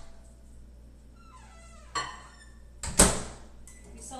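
A microwave door clicks open and shut.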